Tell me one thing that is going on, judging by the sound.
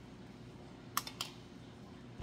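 Pliers snip a wire with a sharp click.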